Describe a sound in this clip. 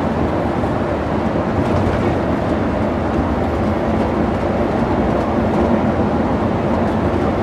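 Tyres hum steadily on smooth asphalt.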